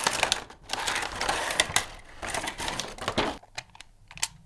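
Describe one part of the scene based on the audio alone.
Plastic packaging rustles and crackles as hands lift a toy out.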